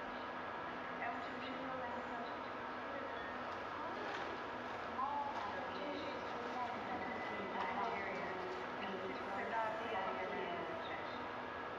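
A man speaks calmly through a loudspeaker in an echoing room.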